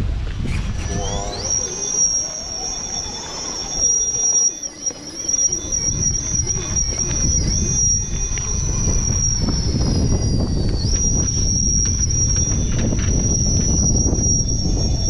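A small electric motor whines steadily as a toy truck crawls over rock.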